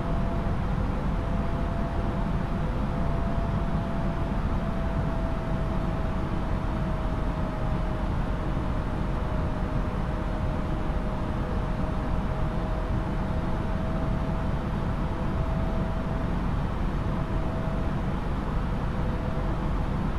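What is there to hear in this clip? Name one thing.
Jet engines drone steadily with a low rumble and a faint steady whine.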